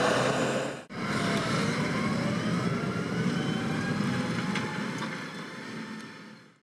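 A tractor engine drones steadily and slowly fades into the distance.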